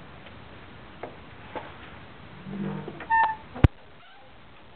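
A metal trailer latch clanks and clicks.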